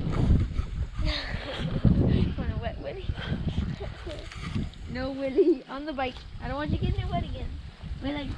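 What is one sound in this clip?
A young boy talks excitedly nearby.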